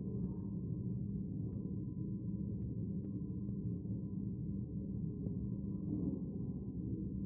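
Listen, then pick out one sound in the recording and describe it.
A murmur of low voices fills a large echoing hall.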